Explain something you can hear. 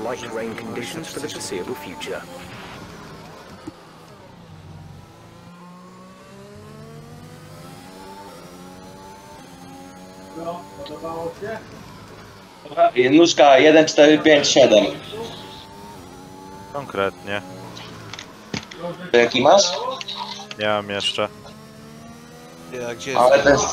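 A racing car engine roars and whines, rising in pitch as it speeds up and dropping as it slows.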